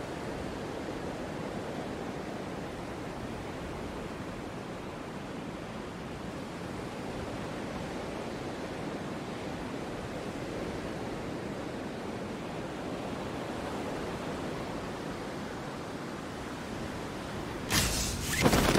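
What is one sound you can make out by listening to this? Wind rushes loudly and steadily past a falling skydiver.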